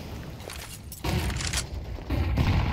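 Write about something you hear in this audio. A flashbang grenade bursts with a sharp bang.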